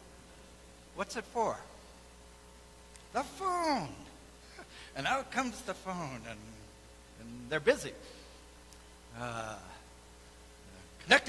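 A man preaches with animation through a microphone in a large echoing hall, pausing between phrases.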